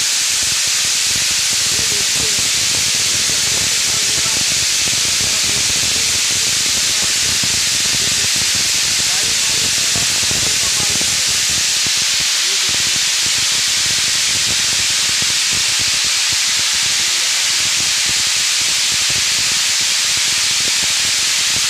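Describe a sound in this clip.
Grain rattles and patters steadily down a metal spiral chute.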